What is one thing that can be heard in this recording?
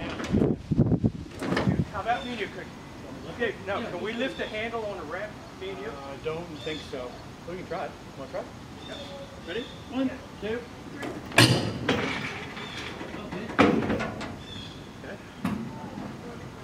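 Metal clanks and thuds against a trailer.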